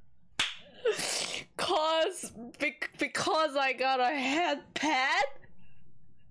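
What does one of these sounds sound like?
A young woman shouts excitedly into a nearby microphone.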